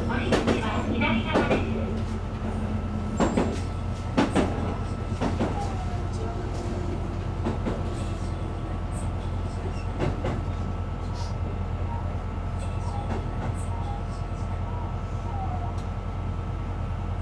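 Train wheels clatter and knock over rail joints.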